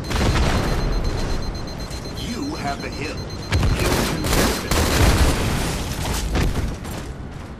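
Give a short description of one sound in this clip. Rifle gunfire rattles in short bursts.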